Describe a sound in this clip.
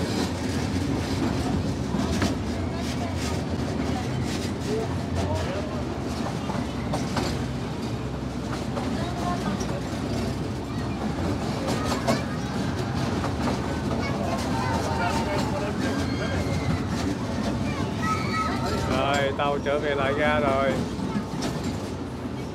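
Children and adults chatter nearby.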